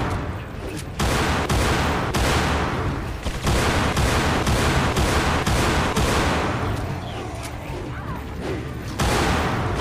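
A handgun fires loud shots in quick succession.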